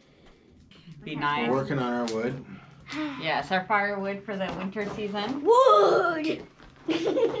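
A woman talks and laughs cheerfully nearby.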